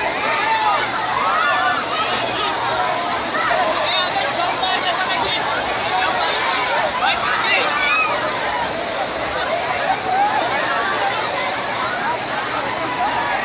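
Water splashes as many people wade and play in a pool.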